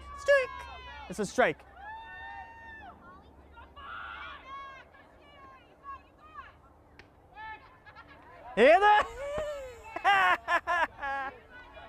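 Young women shout and cheer outdoors.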